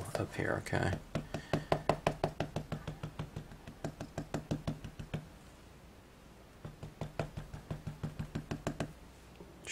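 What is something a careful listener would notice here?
A plastic stamping block taps quickly and repeatedly on an ink pad.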